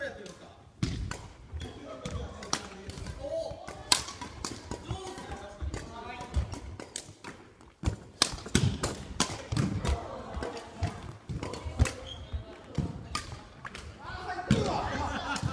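Badminton rackets smack shuttlecocks in a large echoing hall.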